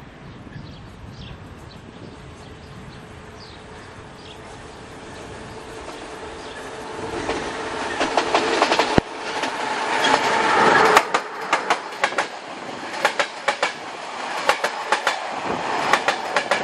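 A train approaches with a growing rumble and passes close by.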